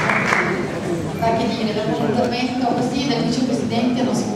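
A woman speaks into a microphone over a loudspeaker.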